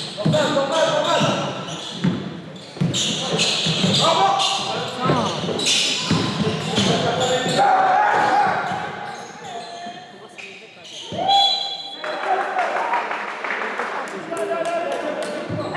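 A man shouts from the sideline.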